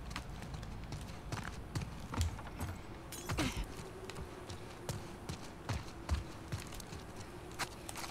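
Footsteps crunch over debris and grass.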